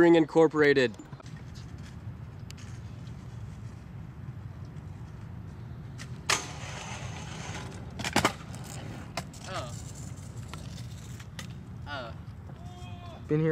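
Scooter wheels roll steadily over pavement.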